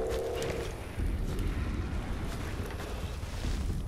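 A fireball bursts with a loud whoosh.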